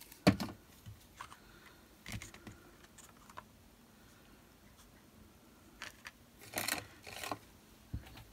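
Paper rustles and slides under hands.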